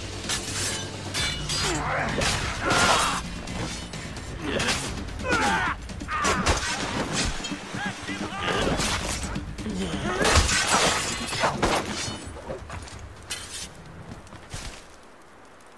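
Swords clash and strike in a fast, loud fight.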